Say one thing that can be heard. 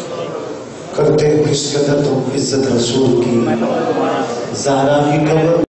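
A group of men chant together loudly.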